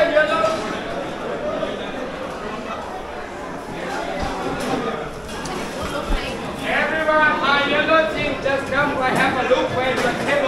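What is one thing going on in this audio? A crowd chatters in a busy echoing hall.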